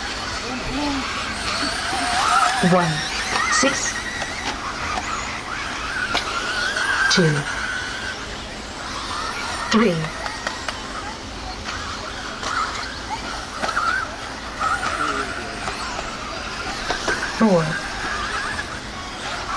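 Small model car motors whine at high pitch as the cars race around a track.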